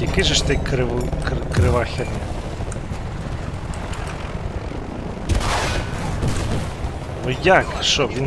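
A helicopter's rotor thrums overhead.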